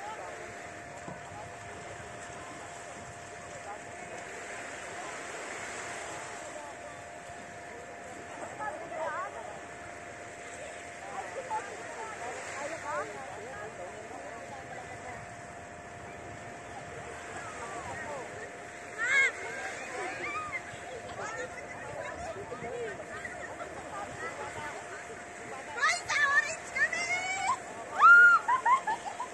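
Small waves wash gently onto a sandy shore.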